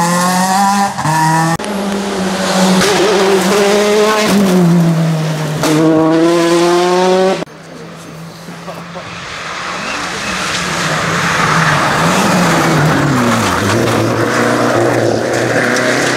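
A rally car engine roars at high revs and shifts gears as the car speeds past.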